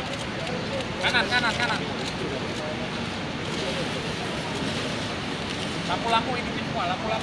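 Men talk nearby among a small crowd.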